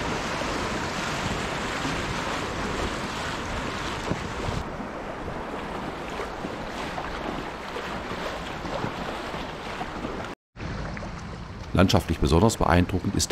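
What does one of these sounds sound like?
River water rushes and splashes over rapids.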